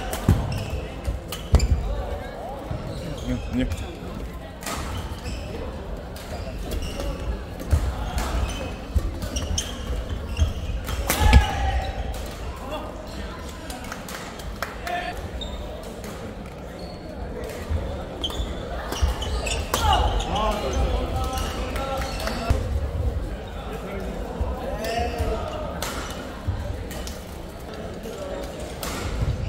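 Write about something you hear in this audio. Shuttlecocks are struck with sharp racket hits in a large echoing hall.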